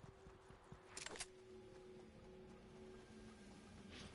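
A game character's footsteps rustle through plants.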